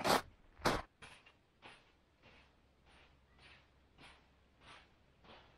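Footsteps crunch faintly through snow farther away.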